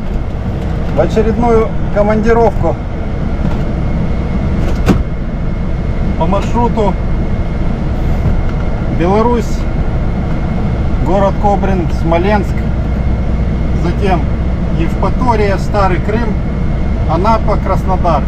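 A truck engine rumbles steadily from inside the cab.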